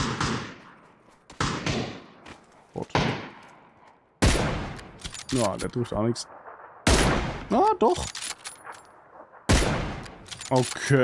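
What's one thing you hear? Rifle shots ring out with a sharp crack and echo.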